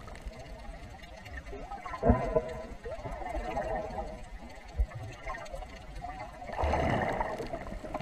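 Water swirls and gurgles, heard muffled from underwater.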